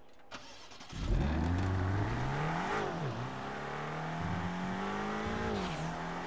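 A car engine revs loudly, rising and falling as the car pulls away.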